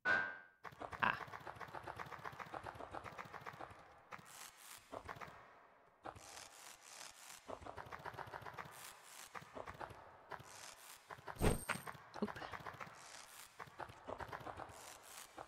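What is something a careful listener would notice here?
Quick, light tapping steps sound as a small game character climbs.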